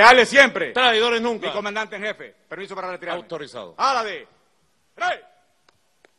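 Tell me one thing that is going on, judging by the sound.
A man speaks loudly and firmly through a microphone outdoors.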